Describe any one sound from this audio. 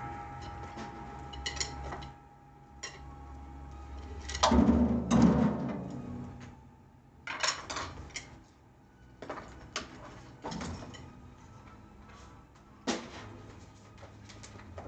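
A drum kit is played with sharp hits on drums and cymbals, echoing in a room.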